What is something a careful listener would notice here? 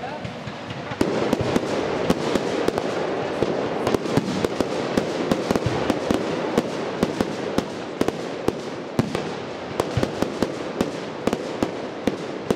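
Fireworks crackle rapidly in a dense barrage.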